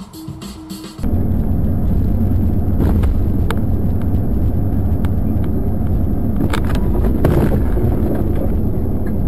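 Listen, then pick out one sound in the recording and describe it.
Tyres rumble steadily on a road as a car drives along.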